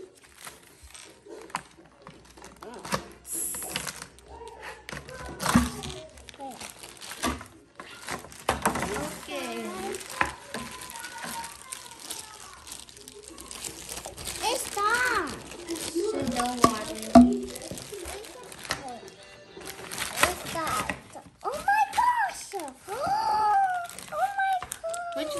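Plastic wrapping rustles and crinkles as it is unwrapped.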